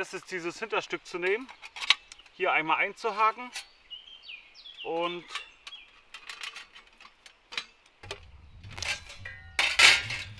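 Metal plates clink and clatter together.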